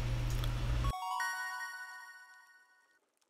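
A short bright game jingle chimes.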